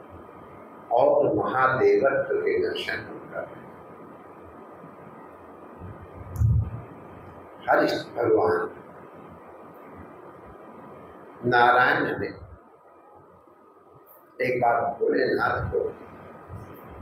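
An elderly man speaks calmly in short phrases through a microphone and loudspeakers.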